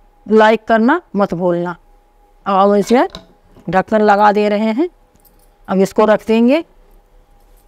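An older woman speaks calmly and close by.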